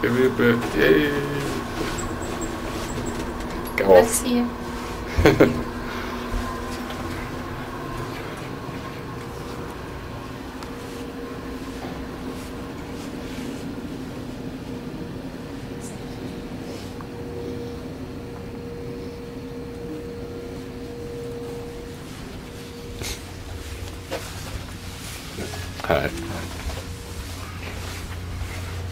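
Footsteps thud softly on carpet.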